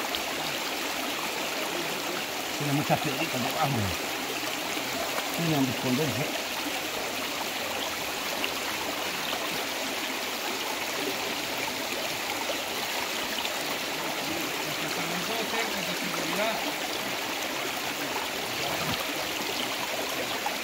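A shallow stream gurgles and trickles over stones outdoors.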